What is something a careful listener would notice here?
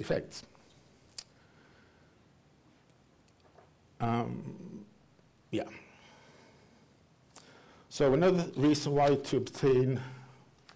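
An elderly man speaks calmly through a microphone, with pauses.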